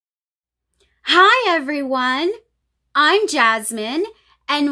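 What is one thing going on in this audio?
A young woman speaks warmly and cheerfully close to a microphone.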